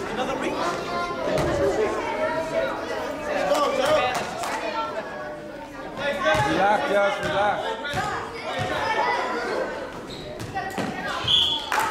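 Young boys shout and call out nearby.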